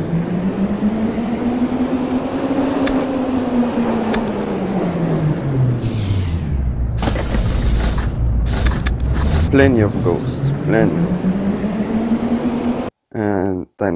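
A train engine hums, its pitch falling and rising with speed.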